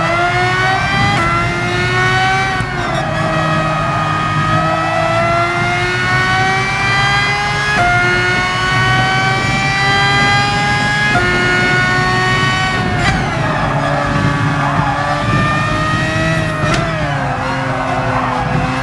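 A racing car engine roars at high revs, climbing in pitch and dropping sharply at each gear change.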